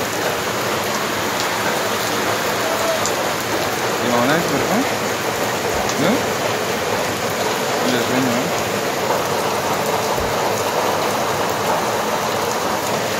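Floodwater rushes loudly and steadily.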